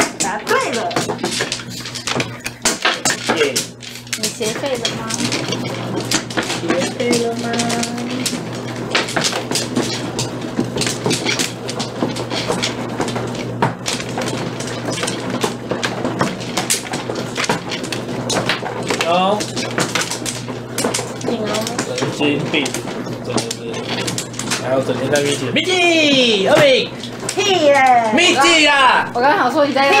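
Mahjong tiles clack and click against each other on a table.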